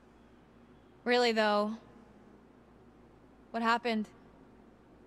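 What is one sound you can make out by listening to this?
A young woman asks a question softly, close by.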